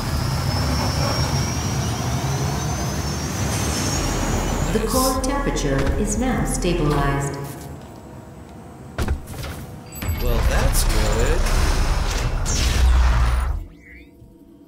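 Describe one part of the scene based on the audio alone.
A deep mechanical rumble drones in a large metal space.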